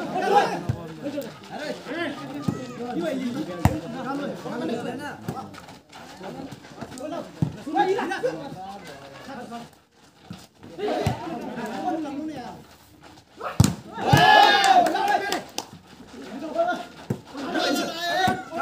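A volleyball thumps off players' hands.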